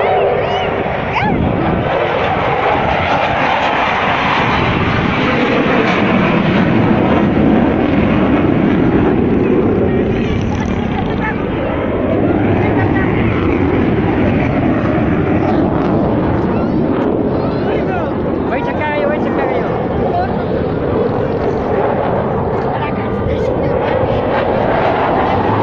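A jet plane roars overhead, rising and falling as it passes.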